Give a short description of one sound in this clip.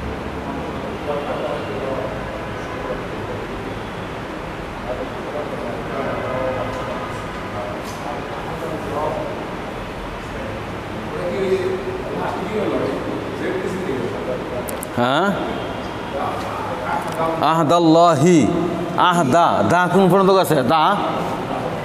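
A middle-aged man speaks through a clip-on microphone.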